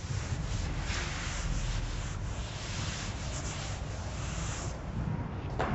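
A cloth wipes across a chalkboard.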